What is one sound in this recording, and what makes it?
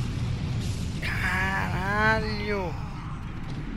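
A creature lets out a rising and falling groan.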